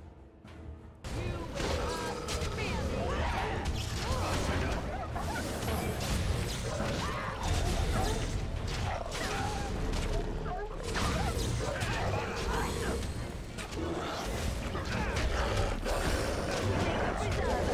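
Creatures growl and snarl.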